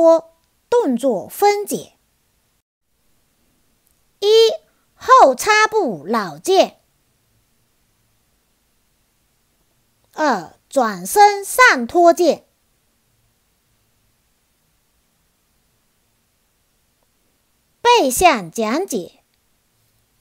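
A young woman speaks calmly and clearly, close to a microphone, in short phrases with pauses.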